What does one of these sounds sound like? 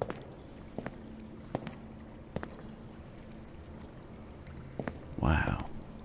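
Water laps gently in a pool.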